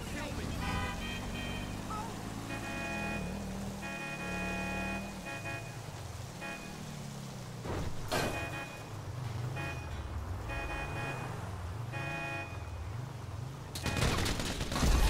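A car engine revs up and down as the car drives.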